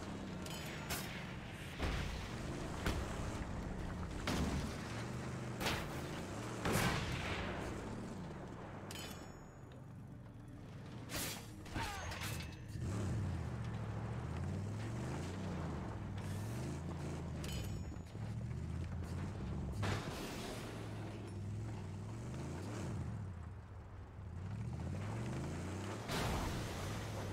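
Loud crashes and impacts bang now and then.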